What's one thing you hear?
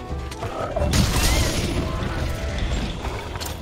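A magical blast bursts with a bright crackling roar.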